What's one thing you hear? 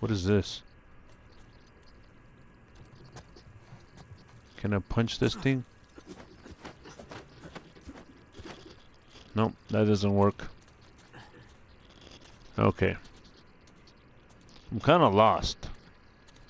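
Footsteps shuffle on loose dirt.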